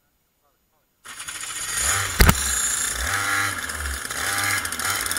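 A go-kart engine starts up and roars loudly close by.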